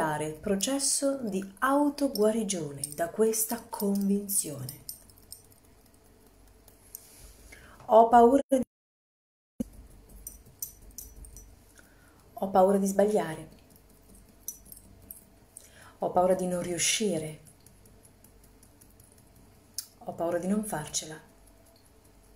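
A woman speaks calmly and close up, in short bursts with pauses.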